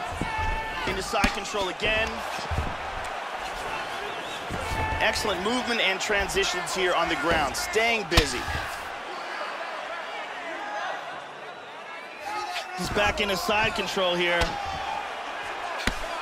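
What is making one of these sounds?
Punches thud repeatedly against a body.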